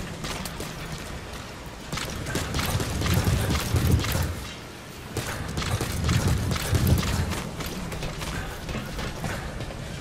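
Boots run quickly across a metal deck.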